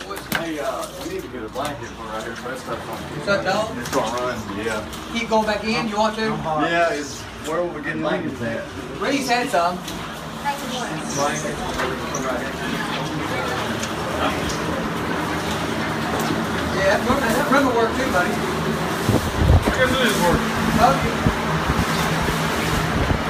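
Squeegees push water across a wet floor with a steady swishing.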